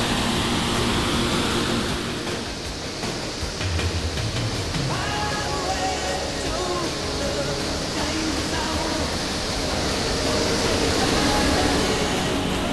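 Propeller engines of a large plane drone and grow louder as the plane approaches.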